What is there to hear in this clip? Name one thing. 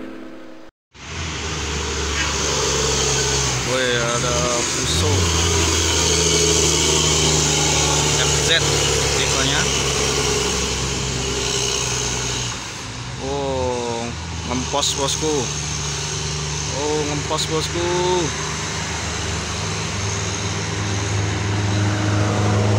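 A truck engine rumbles steadily as it drives past on a road.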